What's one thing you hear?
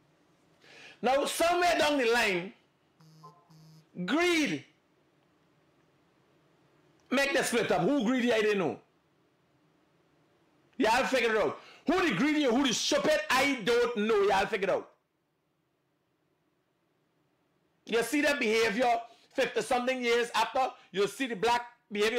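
A man speaks with animation close by, in bursts with pauses.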